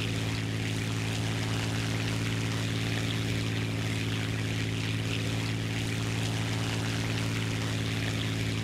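Wind rushes steadily past the plane.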